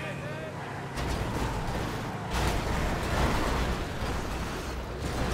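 A vehicle crashes and scrapes against another vehicle.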